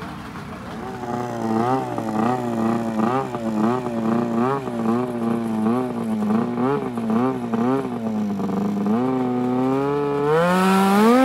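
A snowmobile engine idles and sputters close by.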